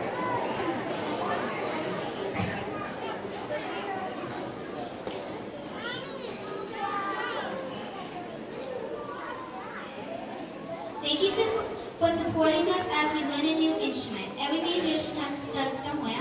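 A young girl speaks softly into a microphone in a large echoing hall.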